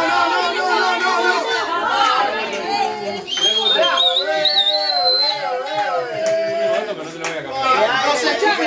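A group of young people sing together nearby.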